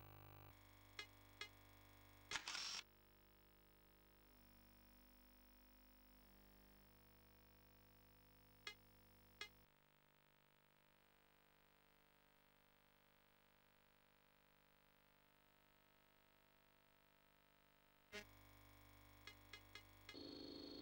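Short electronic menu clicks sound several times.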